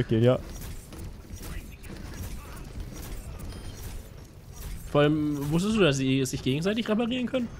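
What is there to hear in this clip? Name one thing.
A gun fires in quick bursts.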